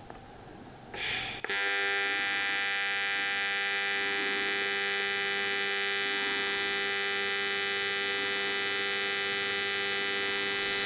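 A welding arc buzzes and hums steadily.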